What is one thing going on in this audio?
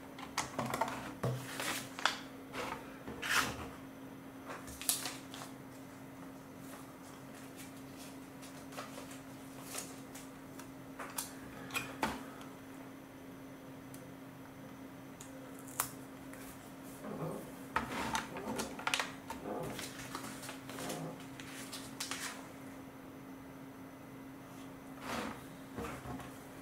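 Plastic toy bricks click and clatter as hands handle them.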